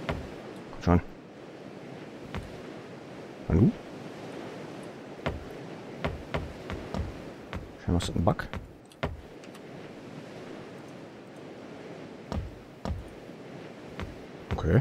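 Waves wash steadily against a wooden boat.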